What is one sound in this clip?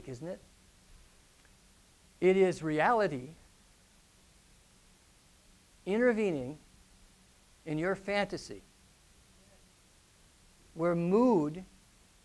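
A middle-aged man speaks calmly in short phrases through a clip-on microphone, with pauses between them.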